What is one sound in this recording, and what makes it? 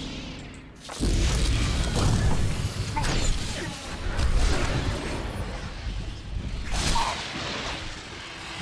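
Electric lightning crackles and buzzes loudly.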